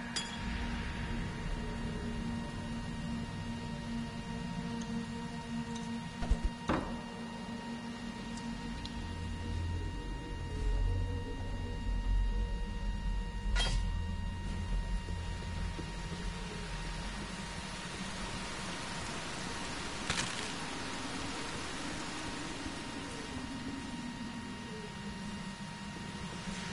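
A low, dark cavern drone hums steadily.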